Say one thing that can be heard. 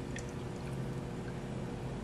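Liquid pours and splashes into a metal bowl.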